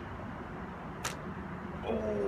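A small gun fires once with a sharp snap.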